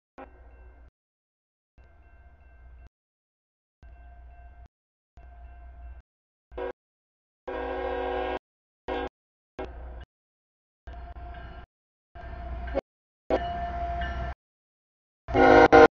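A railroad crossing bell rings over and over.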